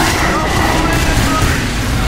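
A flamethrower roars in a short burst.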